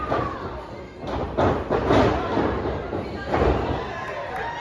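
A wrestler slams onto a ring mat with loud, booming thuds.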